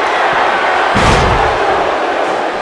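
A body slams heavily onto a wrestling ring mat with a thud.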